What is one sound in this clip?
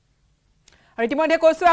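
A young woman speaks clearly and evenly into a microphone.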